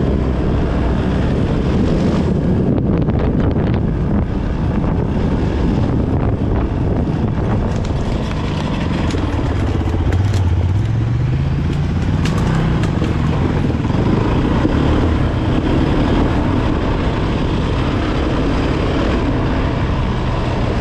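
An off-road motorbike engine hums and revs steadily up close.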